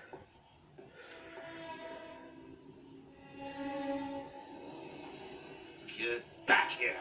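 Soft music plays from a television speaker in the room.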